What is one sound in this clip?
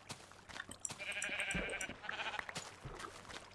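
A pig grunts close by.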